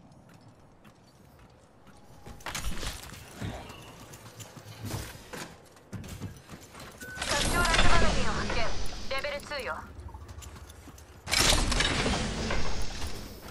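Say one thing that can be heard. A heavy metal lid swings open with a loud clank.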